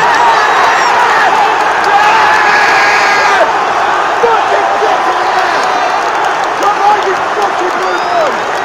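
A man close by shouts with excitement.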